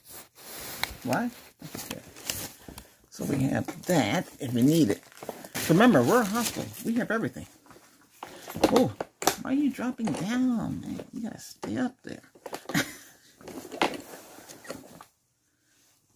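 A middle-aged man talks softly, close to a microphone.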